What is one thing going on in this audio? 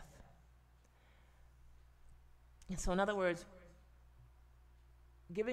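A woman speaks calmly and closely into a microphone, with pauses.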